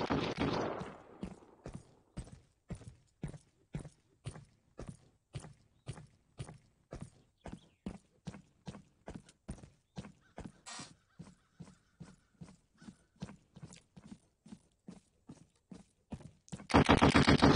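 Quick footsteps crunch on dry, rocky ground.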